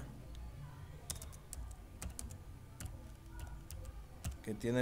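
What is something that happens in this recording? A man types on a keyboard with light clicks.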